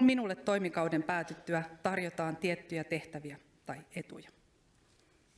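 A woman speaks calmly into a microphone in a large echoing hall.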